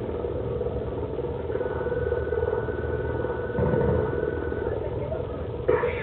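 A helicopter's rotor thuds steadily.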